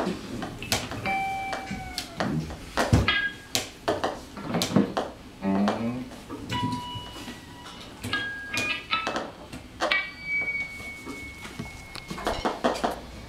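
Electronic tones beep and glide in short bursts.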